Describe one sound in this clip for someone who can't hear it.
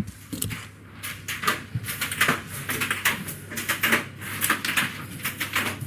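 High heels clack on a hard floor, coming closer.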